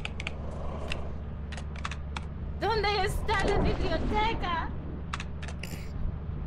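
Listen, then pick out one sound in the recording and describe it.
Keys click rapidly as text is typed.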